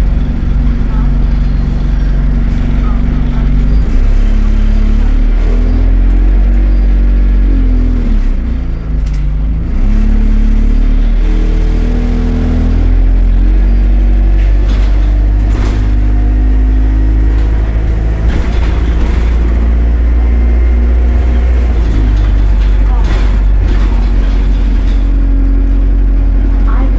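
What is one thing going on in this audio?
A bus engine hums and drones low, rising and falling in pitch as it changes gear.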